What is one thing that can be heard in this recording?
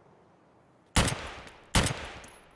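A rifle fires two loud shots that echo.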